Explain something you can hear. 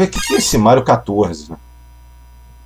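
A man speaks calmly and close into a headset microphone.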